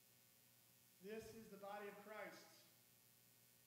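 A middle-aged man speaks calmly through a clip-on microphone in an echoing room.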